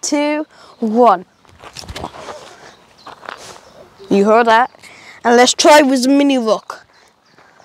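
A young boy talks excitedly nearby.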